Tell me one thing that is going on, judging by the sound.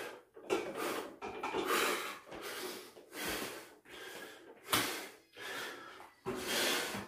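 A man breathes heavily in loud, rhythmic bursts.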